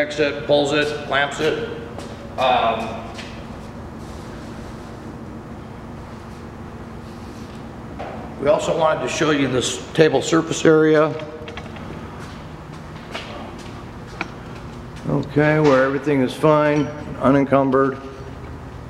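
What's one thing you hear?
A middle-aged man speaks with animation close to the microphone.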